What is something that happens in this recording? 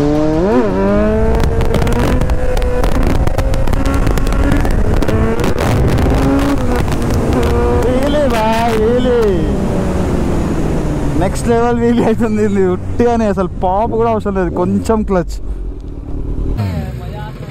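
A motorcycle engine roars and revs up and down while riding.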